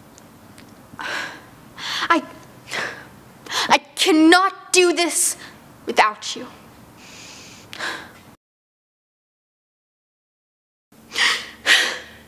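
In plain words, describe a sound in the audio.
A young woman speaks quietly close by.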